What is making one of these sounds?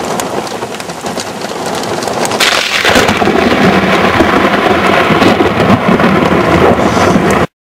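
Strong wind roars and gusts outdoors.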